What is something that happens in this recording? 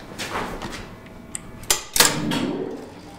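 A switch clicks as a hand turns it.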